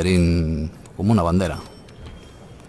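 A game menu plays two short, bright chimes.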